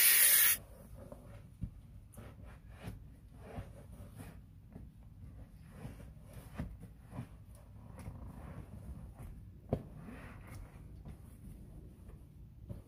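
A cloth rubs and wipes against a seat.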